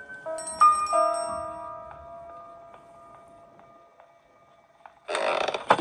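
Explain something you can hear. A tablet game plays ringing chime tones through a small speaker.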